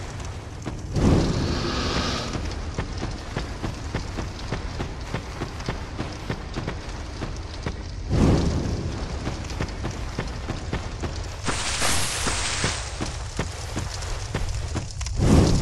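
A flame bursts alight with a whoosh.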